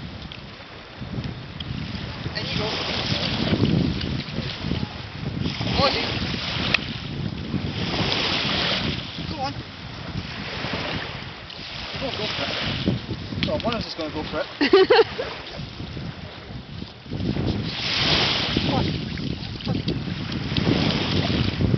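Small waves lap and wash onto a beach.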